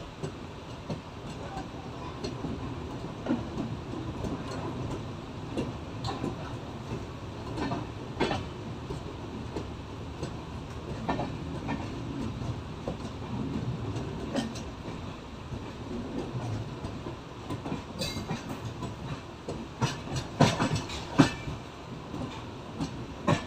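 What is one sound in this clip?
Train wheels clank and knock over rail joints.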